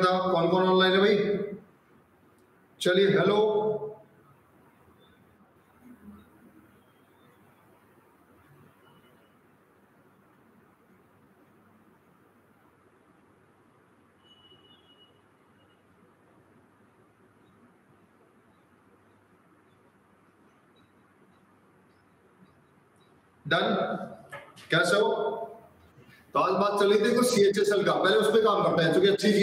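A man speaks calmly and close to a microphone, with long pauses.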